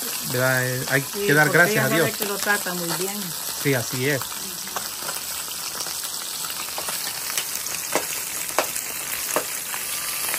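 Fish sizzle in hot oil in a pan.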